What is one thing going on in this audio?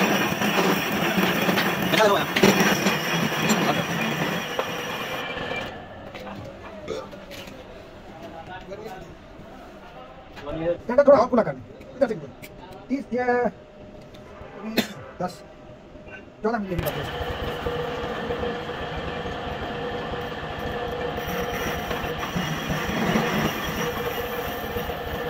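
A metal lathe runs, spinning a cast housing in its chuck.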